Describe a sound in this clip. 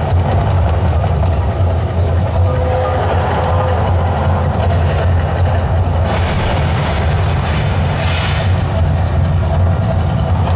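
A deep rumble booms steadily.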